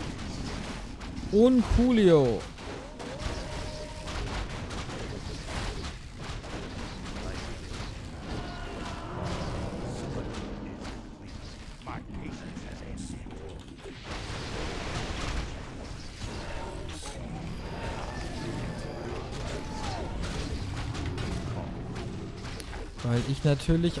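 Weapons clash and spells burst in a game battle.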